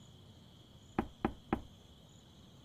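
Someone knocks three times on a wooden door.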